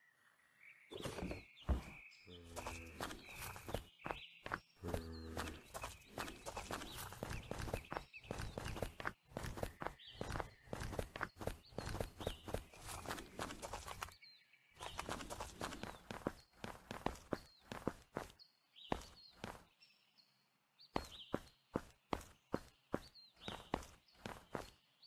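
Quick footsteps thud along at a steady walking pace.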